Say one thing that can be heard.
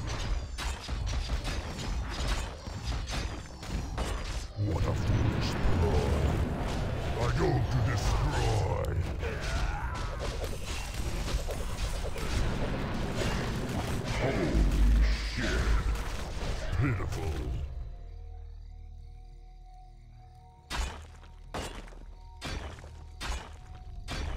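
Weapons clash and magic blasts crackle in a fierce battle.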